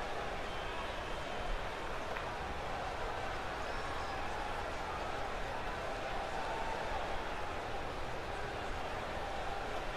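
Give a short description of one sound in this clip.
A large crowd cheers loudly in a big arena.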